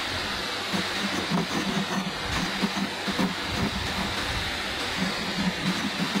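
A pencil scratches lightly on a wooden board.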